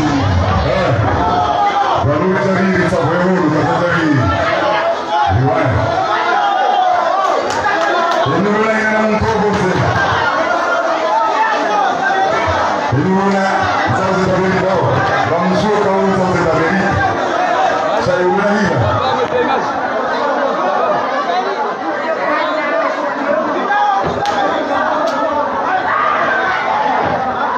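Loud music with a heavy beat plays through loudspeakers.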